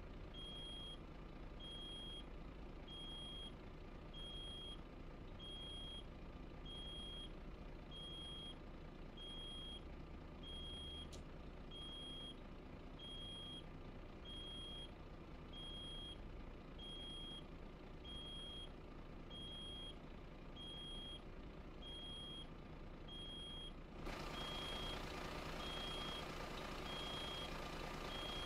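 A truck's reversing alarm beeps at a quick, even pace.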